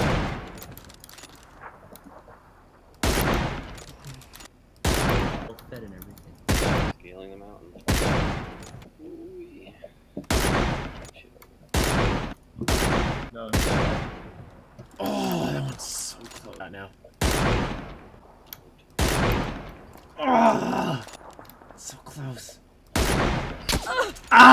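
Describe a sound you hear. Sniper rifle shots ring out again and again, each echoing away.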